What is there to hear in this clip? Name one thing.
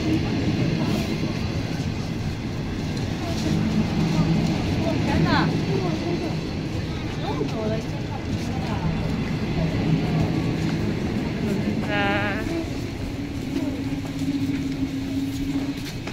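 Several adults chatter nearby in the background.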